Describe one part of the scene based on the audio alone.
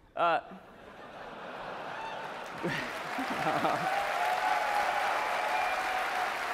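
An audience laughs and the laughter swells.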